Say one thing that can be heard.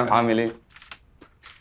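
A man speaks a few words nearby.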